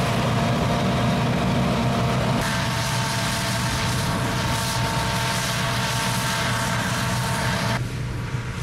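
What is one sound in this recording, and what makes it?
The threshing machinery of a combine harvester whines and rattles.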